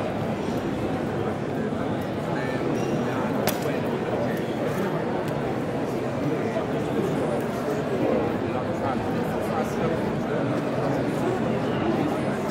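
A knife taps and slices on a wooden cutting board.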